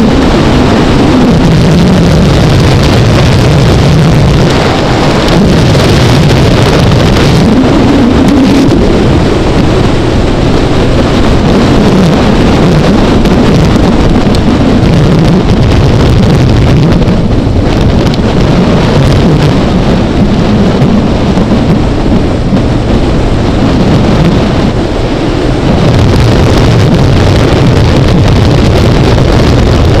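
Wind roars loudly past a microphone.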